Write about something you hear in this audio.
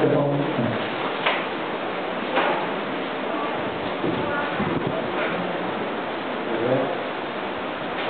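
A middle-aged man speaks calmly into a microphone in a large echoing hall.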